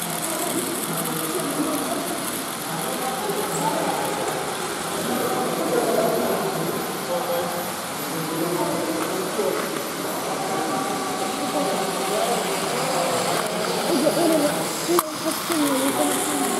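Toy trains whir and rattle along plastic tracks.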